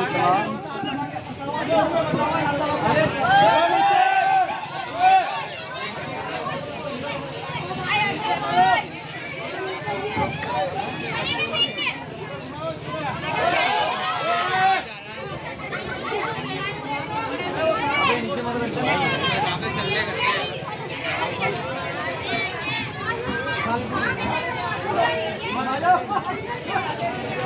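A crowd of men and boys talk and call out all around, close by.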